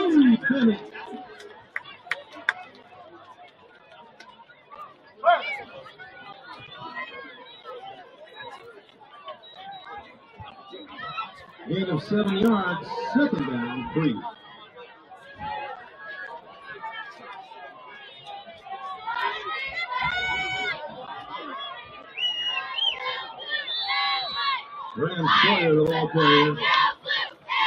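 Young men on the sideline shout and call out.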